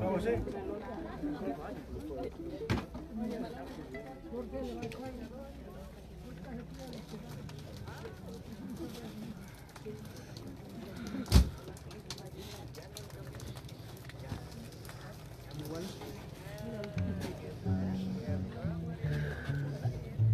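A crowd of men and women murmurs and talks quietly outdoors.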